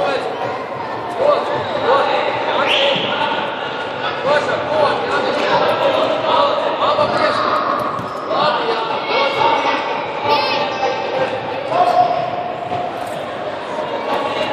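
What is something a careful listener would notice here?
A ball thumps as children kick it.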